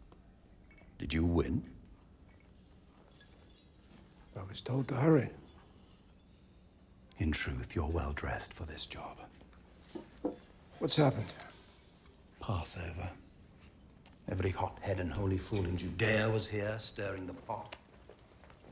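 An older man speaks calmly and closely.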